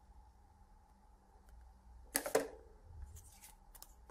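A trading card is set down onto a stack in a metal tin.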